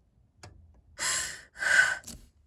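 A young woman breathes out heavily, close by.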